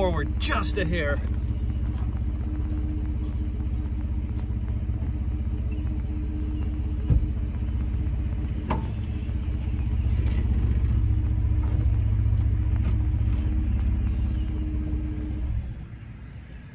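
A truck engine idles with a low steady hum, then cuts off.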